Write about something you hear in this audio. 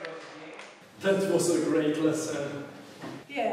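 A young man speaks casually and cheerfully close by.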